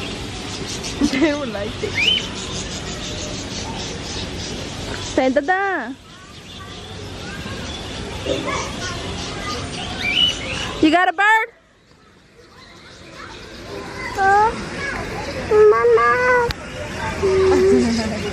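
A young child babbles and squeals close by.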